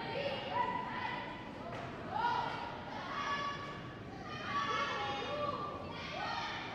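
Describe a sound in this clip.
A young woman shouts loudly nearby.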